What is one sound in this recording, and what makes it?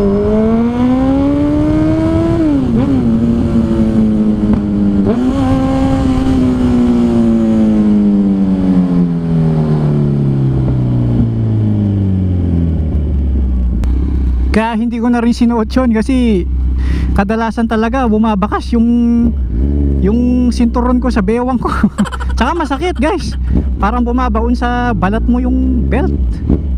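A motorcycle engine hums loudly, rising and then slowly winding down to a low, steady idle.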